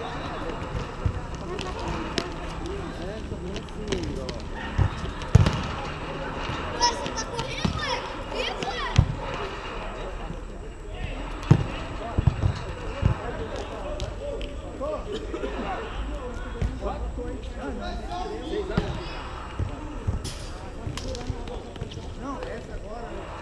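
A volleyball is hit with dull thumps.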